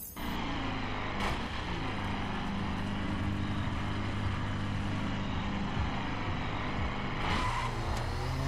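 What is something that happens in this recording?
A motorcycle engine idles with a low, steady hum.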